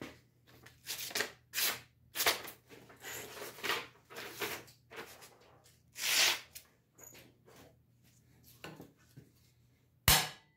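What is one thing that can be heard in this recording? A knife shaves and scrapes at wood in quick strokes.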